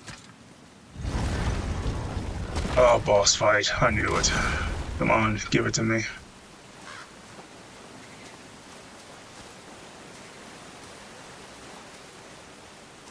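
Water pours down in a steady, rushing waterfall.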